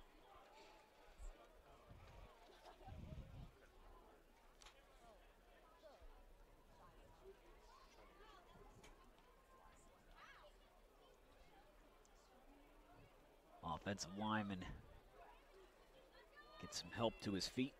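A crowd in the stands murmurs faintly in the distance outdoors.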